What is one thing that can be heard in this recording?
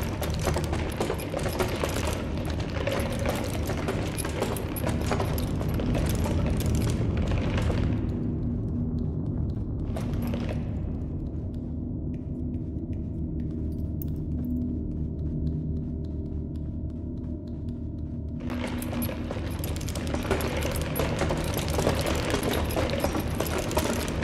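Small footsteps patter quickly across a hard floor.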